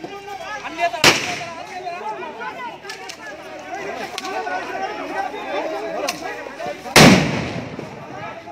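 Loud blasts boom and echo.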